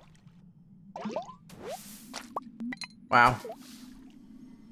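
Short electronic game sound effects chirp and blip.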